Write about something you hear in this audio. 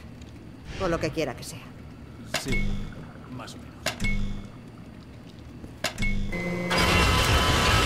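Buttons click and beep as they are pressed one by one.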